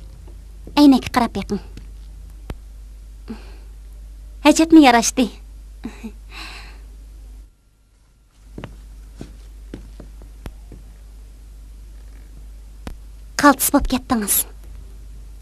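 A young woman talks playfully close by.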